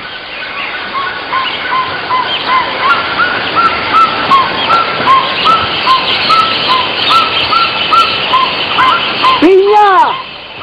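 A bird calls over and over with short, quick chirps.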